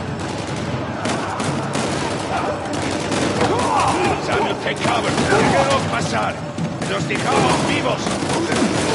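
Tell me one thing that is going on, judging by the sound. Gunshots ring out sharply, echoing in a large hall.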